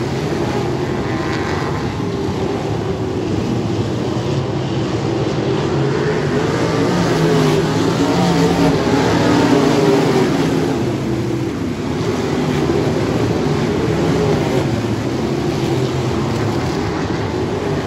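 Midget sprint car engines roar at full throttle as the cars race around a dirt oval.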